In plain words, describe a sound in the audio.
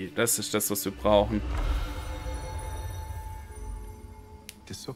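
A magical whoosh swells and rumbles low.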